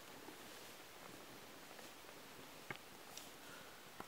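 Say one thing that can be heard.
Clothing and feathers rustle as a bird is handled.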